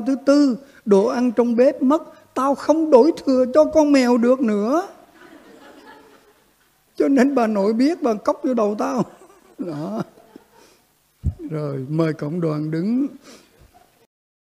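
An elderly man speaks calmly into a microphone in a reverberant hall.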